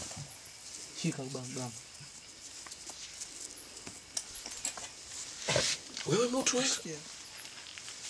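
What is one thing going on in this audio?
A man calls out in short bursts nearby.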